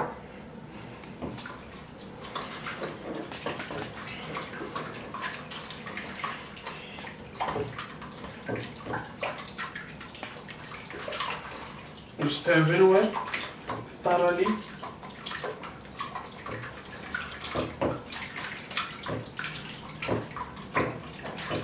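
A wooden stick stirs thick liquid in a plastic bucket, knocking against its sides.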